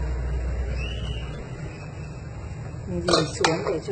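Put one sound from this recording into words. A metal lid clanks onto a pot.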